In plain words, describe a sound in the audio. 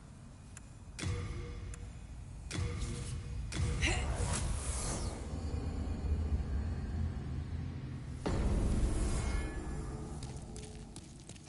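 A deep magical whoosh swells and rumbles.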